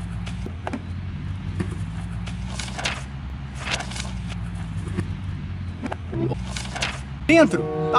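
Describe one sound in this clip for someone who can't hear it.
Paper rustles and crinkles in a hand.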